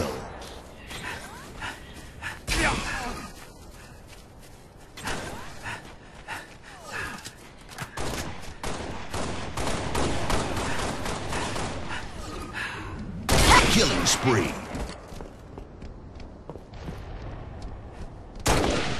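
Rifle shots fire in short bursts.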